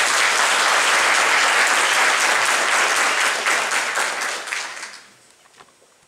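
An audience applauds loudly in a large hall, and the clapping dies away.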